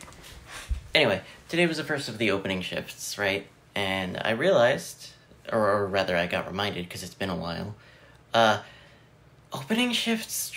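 A young man talks with animation, close to the microphone.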